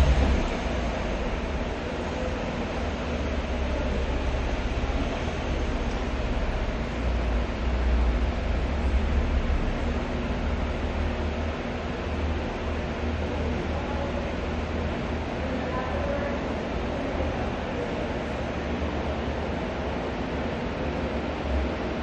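Deep bass music plays through car speakers nearby.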